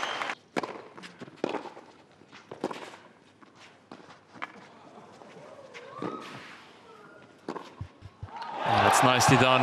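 A tennis ball is struck back and forth with sharp pops of the rackets.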